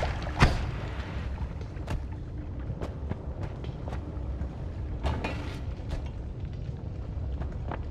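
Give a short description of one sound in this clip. Fire crackles and pops steadily.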